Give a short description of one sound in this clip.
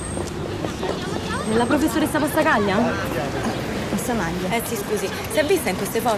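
A young woman speaks quickly outdoors.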